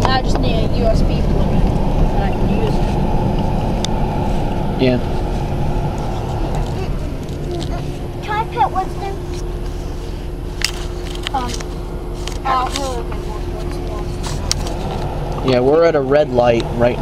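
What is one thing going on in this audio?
A vehicle's engine and tyres rumble steadily while driving.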